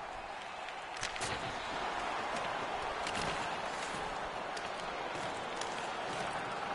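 Hockey sticks clack sharply against a puck.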